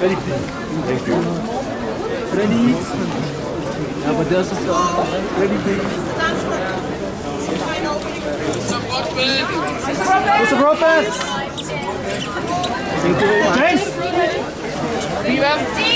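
A crowd of men and women chatters and calls out close by.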